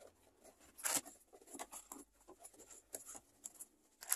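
A cardboard box lid slides and thumps.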